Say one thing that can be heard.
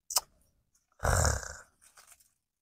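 A knife scrapes against a piece of wood.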